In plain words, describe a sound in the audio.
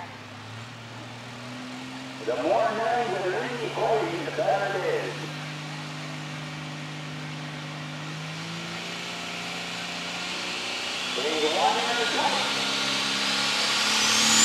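A tractor engine rumbles at idle.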